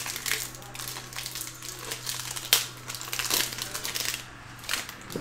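Foil wrapping crinkles as a pack is torn open.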